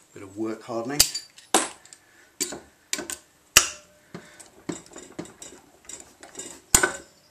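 A hammer strikes metal with sharp ringing taps.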